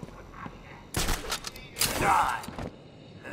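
A grappling hook fires with a sharp whoosh.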